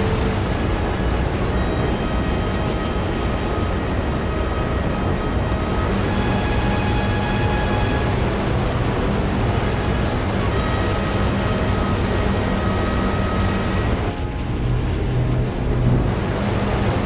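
Several propeller engines drone loudly and steadily.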